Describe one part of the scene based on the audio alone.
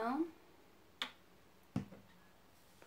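A plastic bottle clicks and taps as hands handle it.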